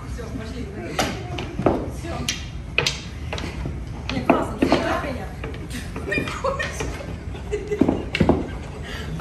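A cue strikes a pool ball with a sharp knock.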